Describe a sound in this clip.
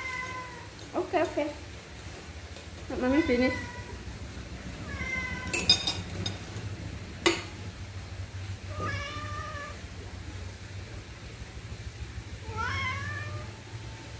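A cat meows repeatedly nearby.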